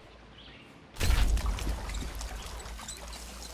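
Leaves rustle as someone pushes through a bush.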